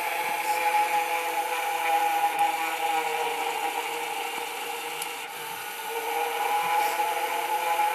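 A motorized ghost decoration hums and whirs as it spins and rises.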